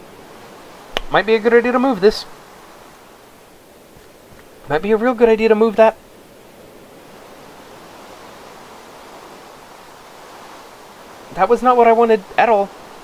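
A man talks into a close microphone in short, lively bursts.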